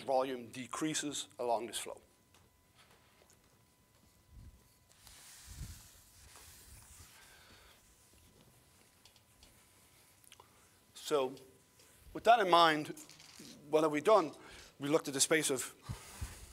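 A man lectures calmly through a microphone, with long pauses.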